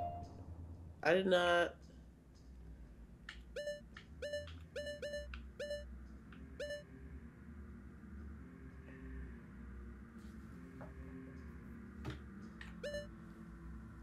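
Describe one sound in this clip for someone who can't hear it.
Short electronic menu blips chime repeatedly.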